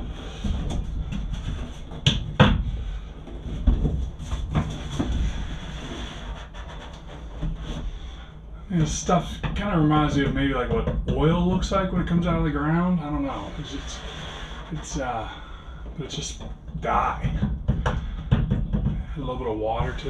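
A wooden stick knocks and scrapes against a plastic bucket.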